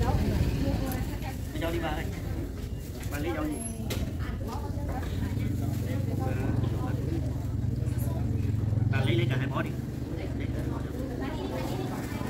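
Leaves rustle as they are handled.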